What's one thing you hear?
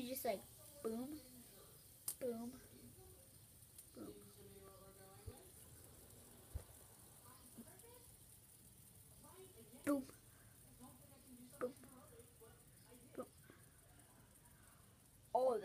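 A fidget spinner whirs softly.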